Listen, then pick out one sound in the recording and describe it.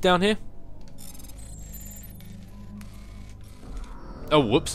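Electronic beeps and chirps sound from a hacking interface.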